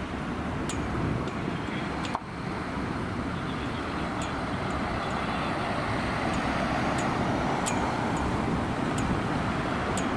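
A heavy truck engine idles in traffic.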